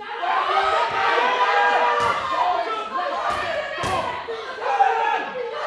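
A crowd of young people shouts and cheers excitedly nearby.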